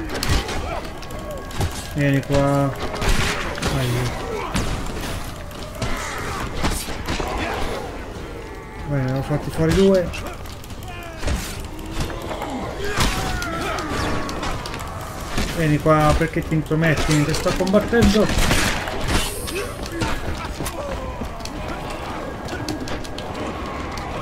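Blades clash and strike in combat.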